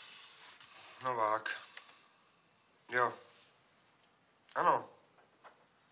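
A young man speaks into a telephone in short, urgent bursts.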